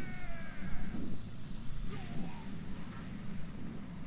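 An explosion booms in a fighting game.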